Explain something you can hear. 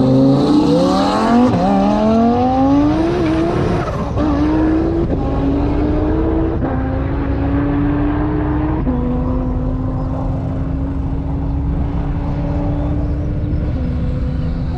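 A sports car engine roars loudly and climbs through the gears as the car speeds away.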